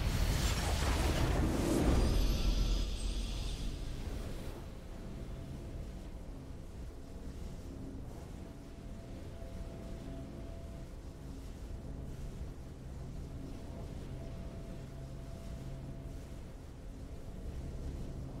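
A triumphant victory fanfare rings out.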